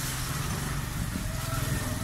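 A motor rickshaw engine rumbles close by.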